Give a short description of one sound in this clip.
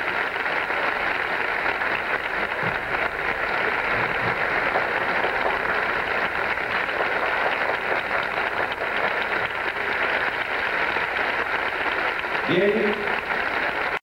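A large crowd applauds steadily in a big hall.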